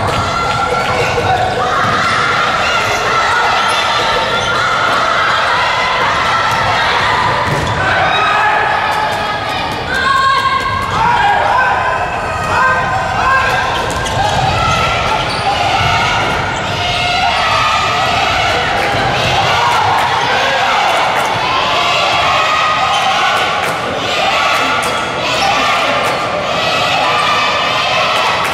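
A crowd of young girls chants and cheers loudly in an echoing hall.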